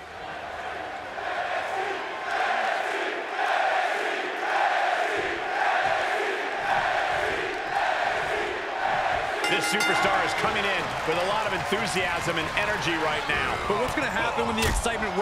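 A large crowd cheers and chants in rhythm in a big echoing arena.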